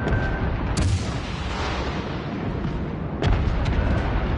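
Heavy naval guns boom in loud, sudden blasts.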